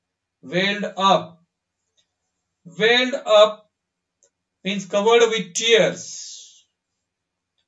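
A man reads aloud calmly through a microphone, in short phrases with pauses.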